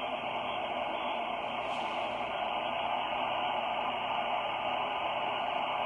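A radio receiver hisses with steady static.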